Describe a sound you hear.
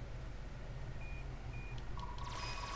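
Short electronic menu beeps chirp.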